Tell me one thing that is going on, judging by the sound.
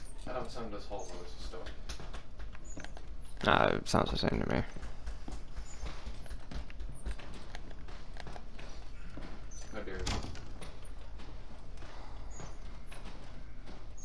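A metal walker creaks and rattles as it is pushed slowly across a floor.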